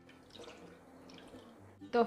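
Liquid trickles into a bowl.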